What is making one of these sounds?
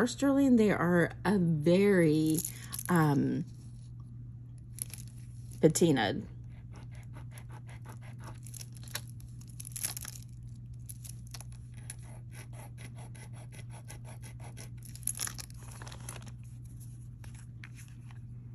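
Wooden beads click softly against one another.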